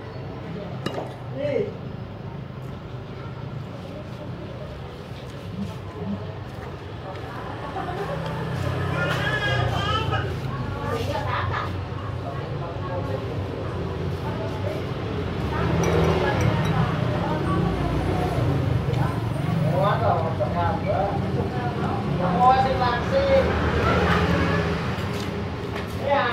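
A spoon clinks against a ceramic bowl.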